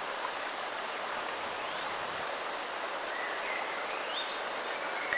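A stream rushes steadily over rocks nearby.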